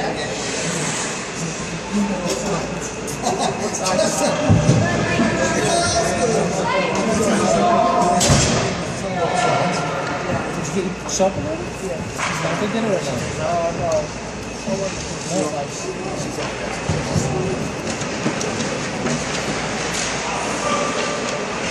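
Hockey sticks clack against the ice and the puck.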